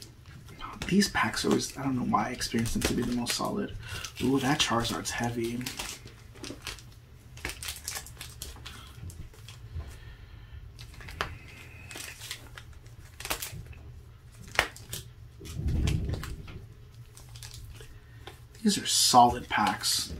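Foil card packs crinkle and rustle in someone's hands.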